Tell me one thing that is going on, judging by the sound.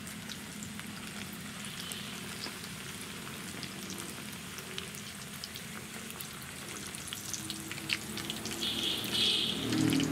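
A metal slotted spoon scrapes and clinks against a pan.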